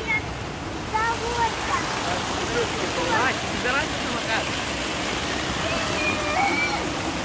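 Water rushes and splashes over a ledge close by.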